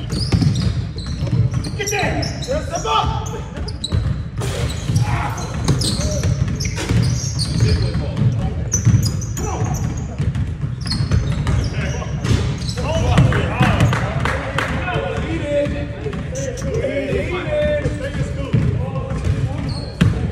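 Young people shout and call out to each other during a game.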